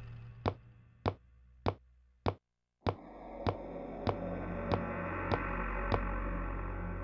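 Footsteps echo slowly along a hallway.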